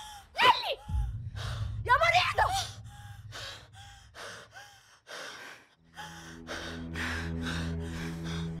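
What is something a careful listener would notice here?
A woman argues back heatedly close by.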